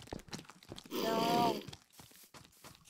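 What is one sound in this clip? A zombie groans.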